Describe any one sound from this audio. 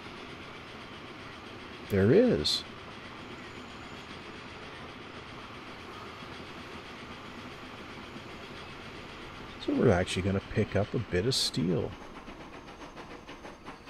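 A train rolls steadily along the rails.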